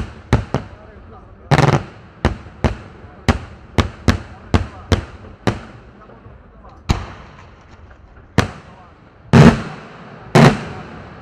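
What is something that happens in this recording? Fireworks explode overhead with sharp bangs that echo off into the distance.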